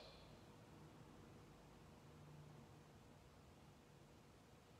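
A man speaks quietly through a microphone in a large echoing hall.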